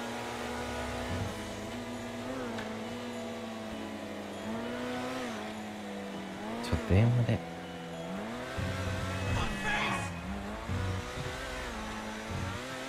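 A car engine hums and revs up and down as a car drives.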